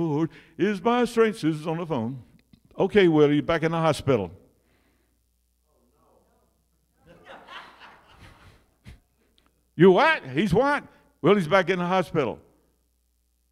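An elderly man speaks with animation into a microphone, heard through loudspeakers in a large room.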